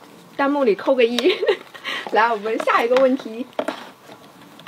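A young woman speaks brightly and cheerfully close to a microphone.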